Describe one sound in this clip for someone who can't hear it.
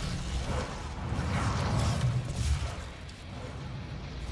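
A heavy gun fires, with blasts booming and crackling.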